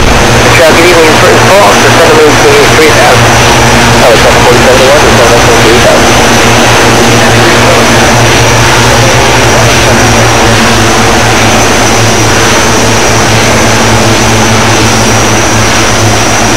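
A twin propeller engine drones steadily.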